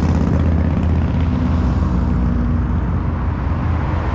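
A car's engine hums as it drives past close by.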